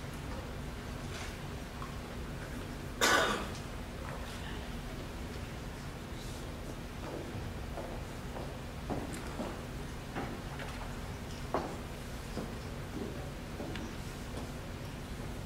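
A woman announces through a microphone in a large echoing hall.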